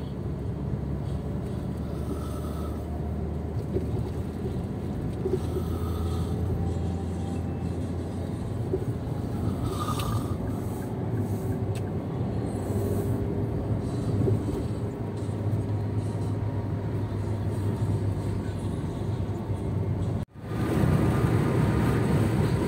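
Road noise from a car's tyres rumbles steadily, heard from inside the car.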